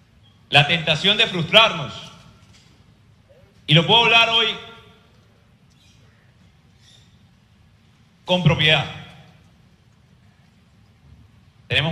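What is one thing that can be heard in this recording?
A man speaks with animation into a microphone in an echoing hall, in short bursts with pauses.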